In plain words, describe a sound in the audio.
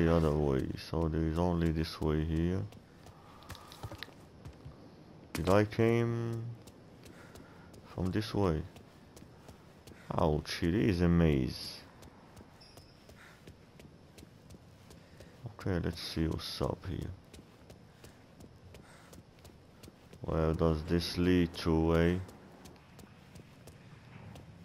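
Footsteps tap on concrete.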